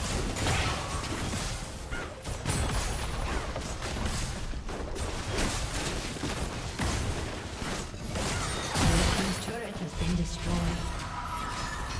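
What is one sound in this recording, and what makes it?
Game spells and weapon blows clash in a busy battle.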